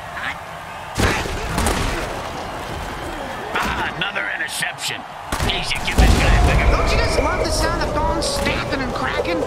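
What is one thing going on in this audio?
Armoured players crash into each other with heavy thuds.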